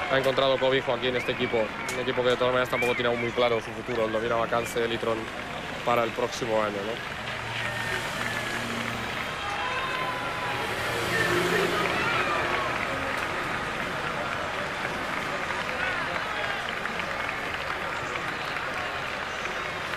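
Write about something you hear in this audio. Racing bicycles whoosh past on the road.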